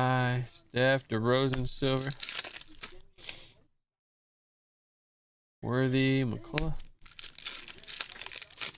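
A foil card wrapper crinkles and tears.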